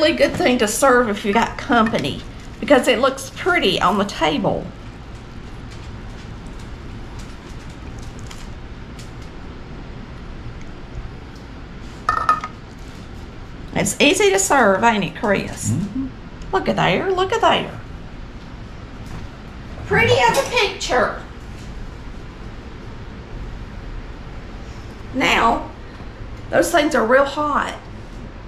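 A middle-aged woman talks calmly and warmly, close by.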